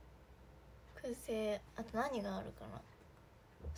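A young woman speaks close to a microphone, drawn out and expressive.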